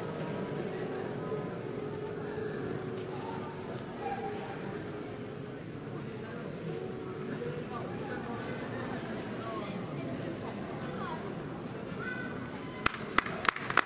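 A grand piano plays softly in a large hall.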